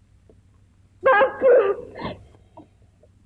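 A woman cries out in distress nearby.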